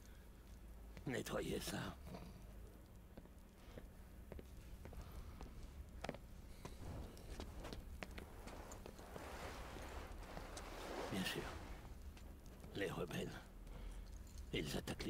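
A middle-aged man speaks calmly and with authority.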